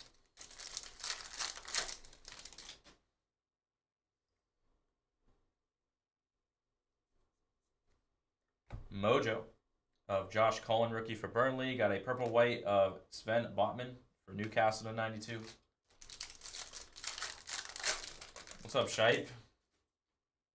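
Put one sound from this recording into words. A foil card wrapper crinkles as it is torn open.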